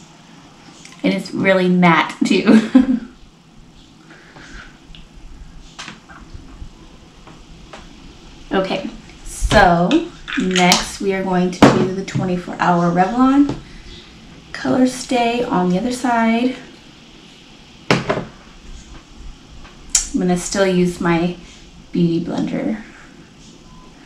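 A young woman talks calmly and close to a microphone, pausing often.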